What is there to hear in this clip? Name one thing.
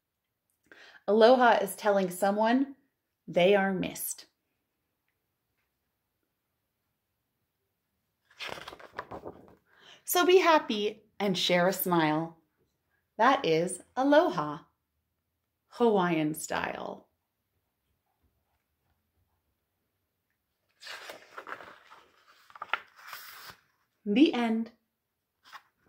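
A woman reads aloud close by, in a lively voice.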